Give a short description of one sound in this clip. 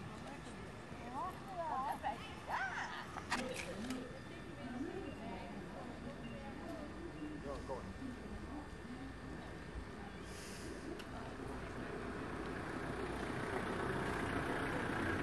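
Footsteps tap on paving as an elderly woman walks.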